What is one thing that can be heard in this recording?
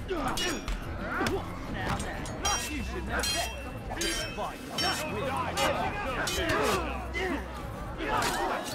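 Steel swords clash and ring sharply.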